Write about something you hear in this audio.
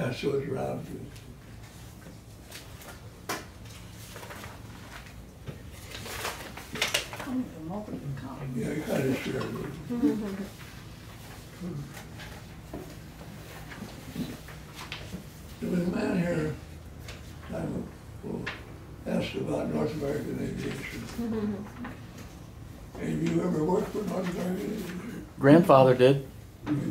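An elderly man speaks calmly and slowly, close by, with pauses.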